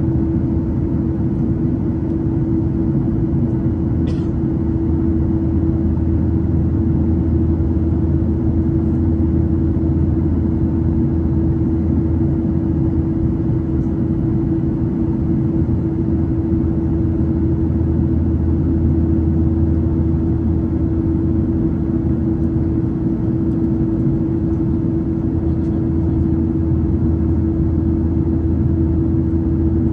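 A jet airliner's engines drone steadily from inside the cabin.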